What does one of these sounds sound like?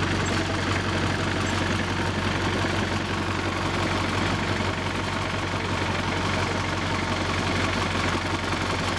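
Metal wheels rumble and clack along a narrow track.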